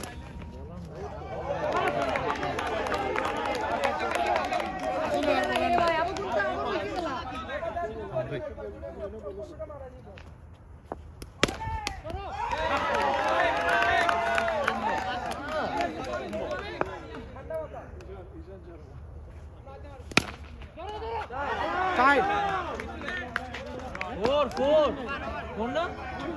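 Several men nearby talk and call out with animation outdoors.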